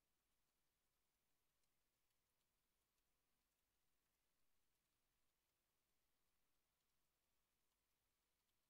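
Keyboard keys click softly now and then.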